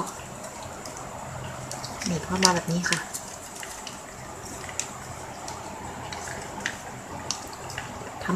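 Plastic ribbon rustles and crinkles softly as it is folded.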